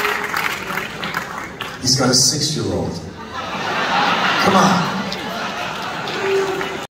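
A man sings into a microphone.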